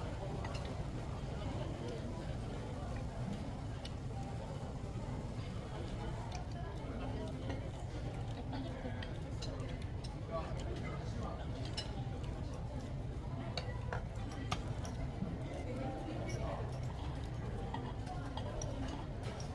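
Cutlery clinks and scrapes against plates.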